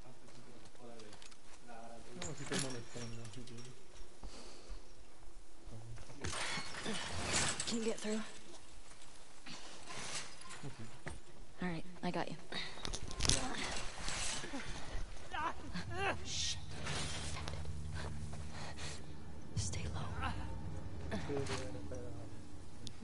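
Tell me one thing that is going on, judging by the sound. A young woman speaks in a low voice nearby.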